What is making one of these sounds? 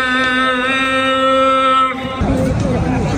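A man chants a long, melodic call through loudspeakers.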